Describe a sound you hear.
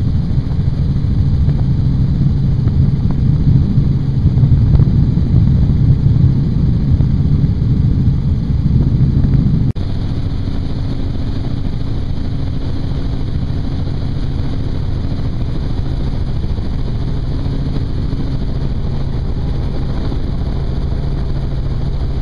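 A helicopter's engine and rotor drone steadily and loudly close by.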